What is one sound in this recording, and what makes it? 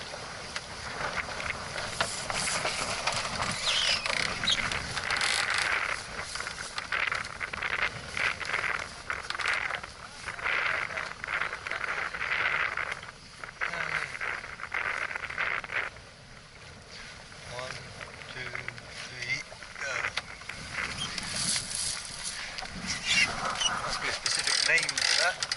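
Wind buffets and roars across the open water.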